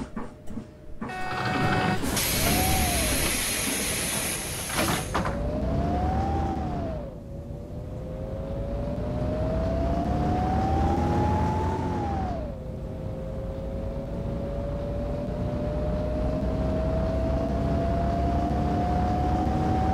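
A bus engine hums and whines, rising in pitch as it speeds up and dropping with each gear change.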